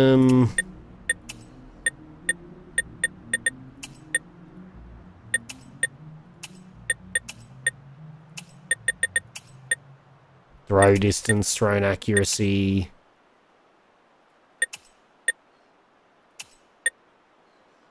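Short soft blips tick as a menu selection moves from item to item.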